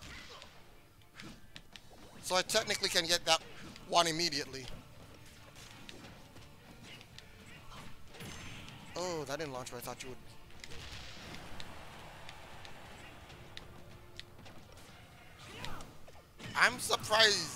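Video game punches and blasts thump and crackle in quick bursts.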